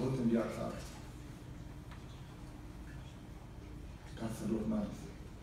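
A middle-aged man speaks calmly into a microphone over loudspeakers in an echoing hall.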